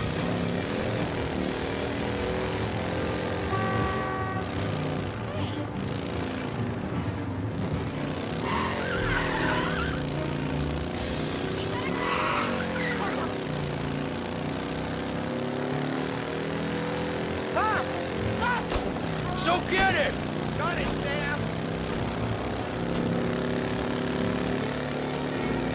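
A motorcycle engine hums steadily, rising and falling in pitch as it rides.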